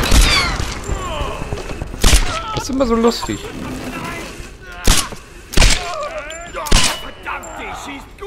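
A pistol fires single sharp shots.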